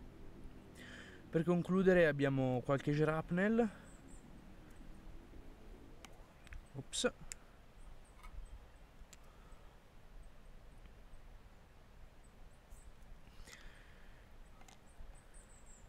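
Small lead balls click softly as a hand sets them down on stone.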